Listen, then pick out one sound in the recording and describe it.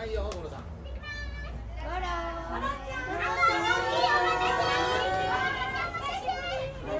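A crowd of young women squeals and cheers excitedly.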